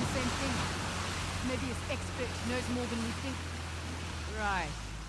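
Rushing water splashes loudly.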